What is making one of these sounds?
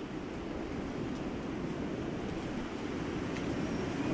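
Footsteps crunch slowly on a stony path outdoors.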